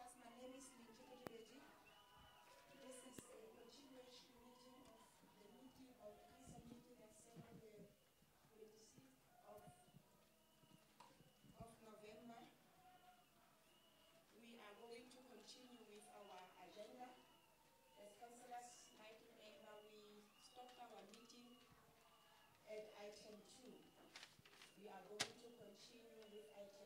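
A woman speaks steadily into a microphone, heard over loudspeakers in a large room.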